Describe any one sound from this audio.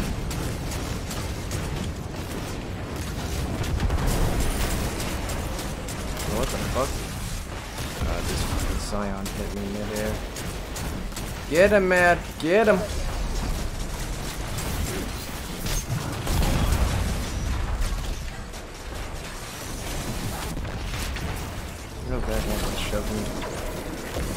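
Rapid gunfire rattles and booms continuously.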